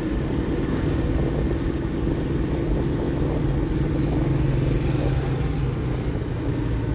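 A motorcycle engine hums steadily close by as the bike rides along.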